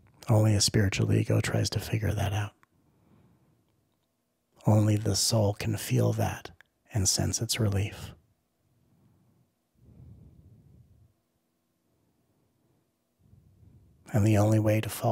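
A man speaks calmly and close into a microphone, with pauses.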